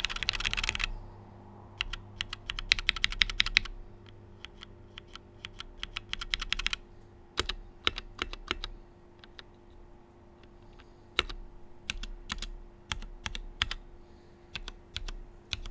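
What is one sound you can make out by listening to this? Single keys click now and then as a finger presses them one at a time.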